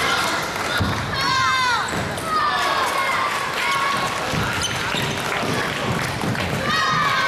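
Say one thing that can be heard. Sports shoes squeak sharply on a wooden floor.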